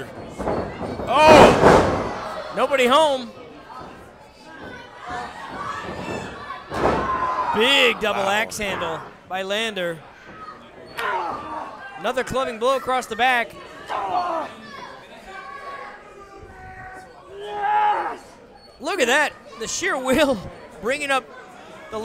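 A crowd in a hall shouts and cheers.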